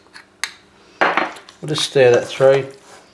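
Hands squish and mix soft food in a metal bowl.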